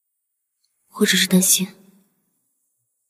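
A young woman speaks quietly and sadly.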